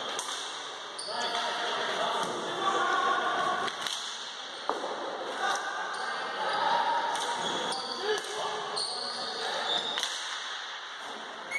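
Players and spectators shout and call out in an echoing hall.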